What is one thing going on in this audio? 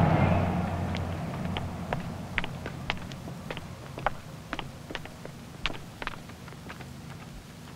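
Footsteps walk across a hard floor.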